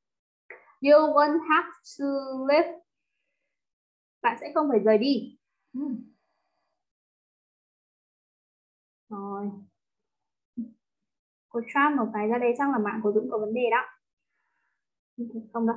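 A young woman speaks calmly into a microphone, explaining with pauses.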